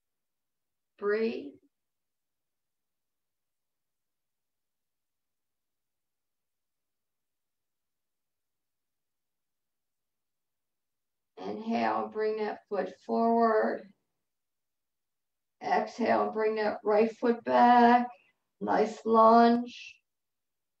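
An older woman speaks calmly through an online call.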